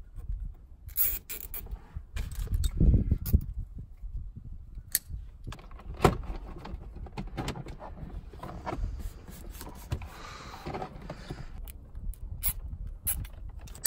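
Plastic trim and cables rustle and click close by.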